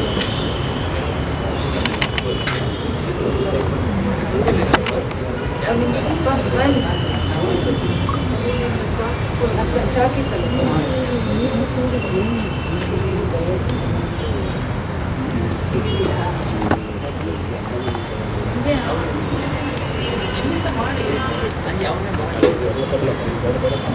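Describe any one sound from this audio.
A crowd of men and women murmurs and talks quietly nearby.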